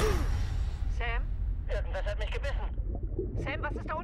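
A man speaks tensely through a diving helmet's radio.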